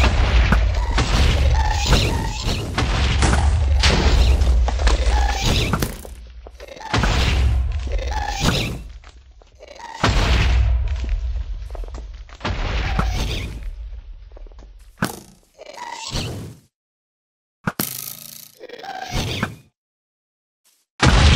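A bow twangs as arrows are shot again and again.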